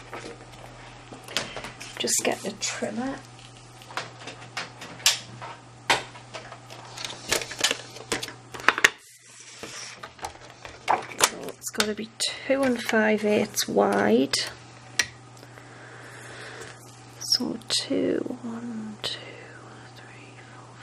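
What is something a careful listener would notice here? Paper rustles and slides across a hard surface.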